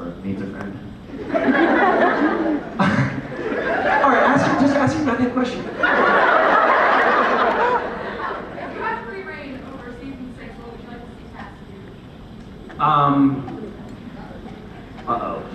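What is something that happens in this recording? A man speaks with animation into a microphone, heard through a loudspeaker in a large room.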